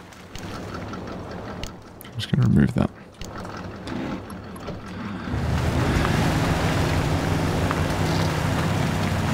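A truck engine rumbles and growls as it drives over rough ground.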